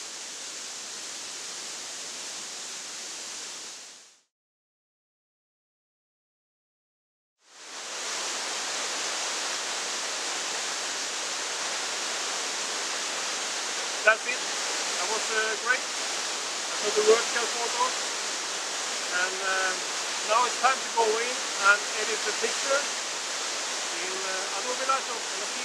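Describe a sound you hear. A waterfall splashes steadily nearby.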